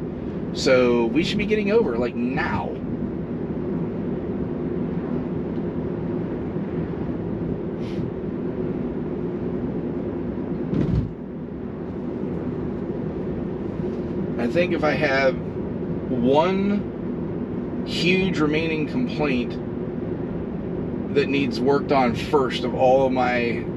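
A car hums steadily with road noise while driving.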